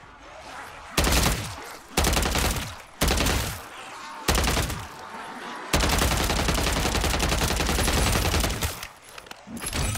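A submachine gun fires in rapid bursts.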